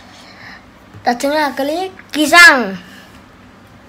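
A small child speaks briefly in a high voice.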